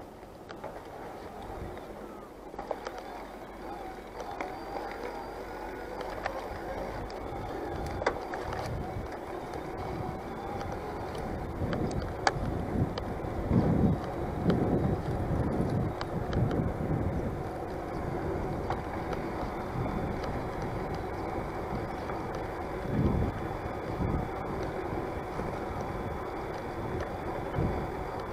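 Bicycle tyres hum along a paved path.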